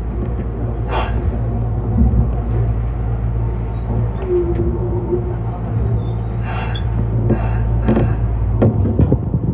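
Wheels clatter and squeal on the rails.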